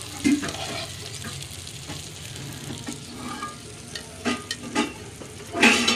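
A metal spatula scrapes and clinks against a plate.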